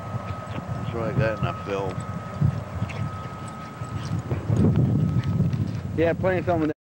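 A dog yelps and whines.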